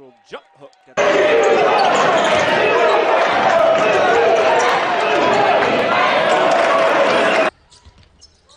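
A large crowd cheers and roars loudly in an echoing hall.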